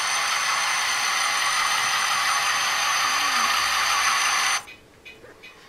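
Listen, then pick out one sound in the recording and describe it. Model locomotive motors hum loudly and steadily.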